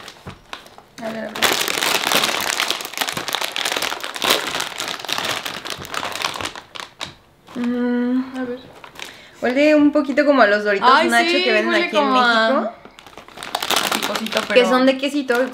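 A snack bag crinkles loudly as it is handled and opened.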